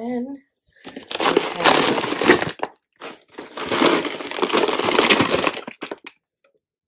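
Plastic packaging rustles and crinkles as a hand rummages.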